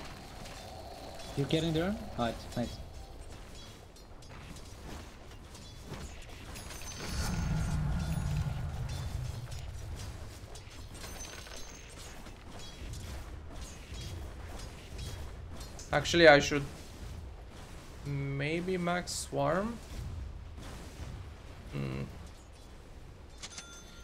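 Game combat effects clash and whoosh quietly in the background.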